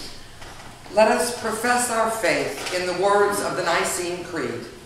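A woman speaks clearly, reading out in a room with a slight echo.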